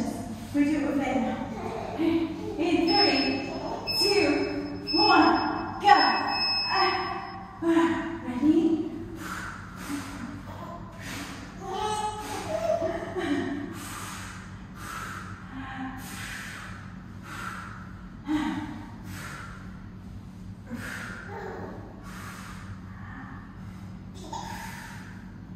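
A woman talks with animation in a room with some echo.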